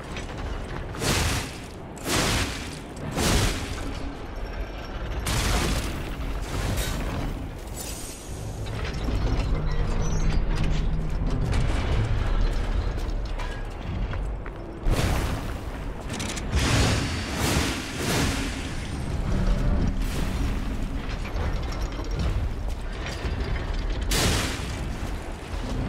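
Heavy metal blows clang and crash in a fight.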